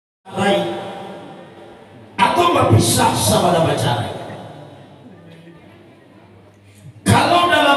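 A man preaches through a loudspeaker in a large echoing hall, his voice rising and falling with long pauses.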